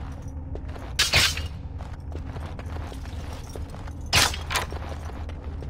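Game sound effects chime as a trap is disarmed.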